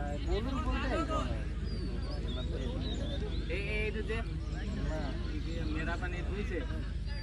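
Several men call out to each other across an open field.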